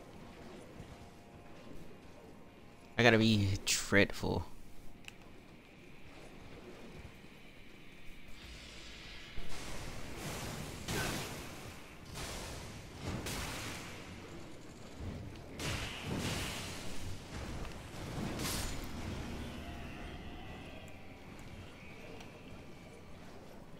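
Hooves thud as a horse gallops.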